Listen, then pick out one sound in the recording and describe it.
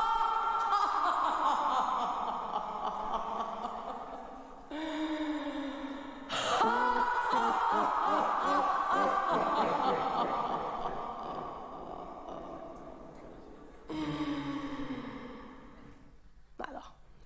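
A woman sings slowly with long held notes.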